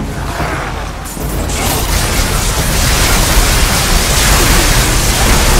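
Blades slash and strike repeatedly.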